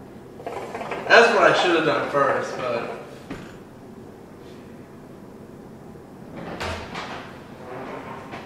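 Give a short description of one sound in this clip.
A second man talks close by.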